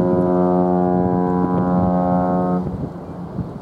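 A ship's horn blasts loud and deep across the water, then stops.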